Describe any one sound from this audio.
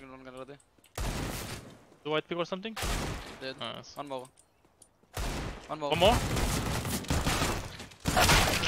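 Gunshots crack in a game.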